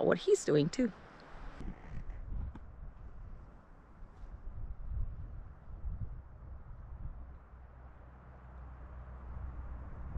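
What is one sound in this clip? Wind rumbles softly across the microphone outdoors.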